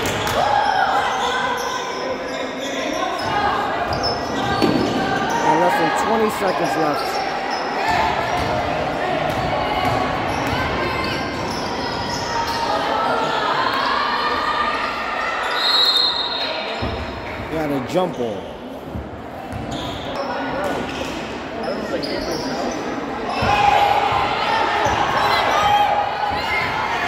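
A crowd of spectators cheers in a large echoing gym.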